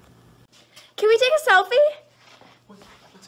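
A young woman speaks cheerfully, close by.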